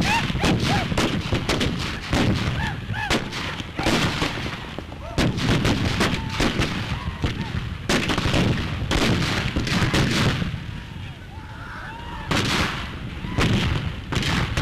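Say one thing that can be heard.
Horses gallop with thudding hooves on dirt.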